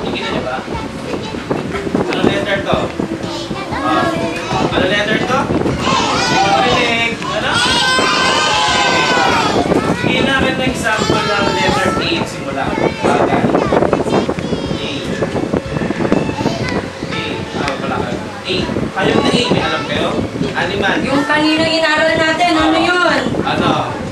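Young children chant and sing along loudly together.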